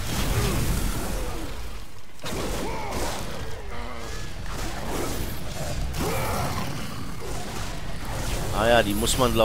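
A monstrous beast growls and roars.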